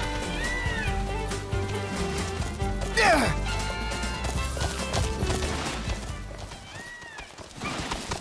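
A large bird's feet thud quickly as it runs.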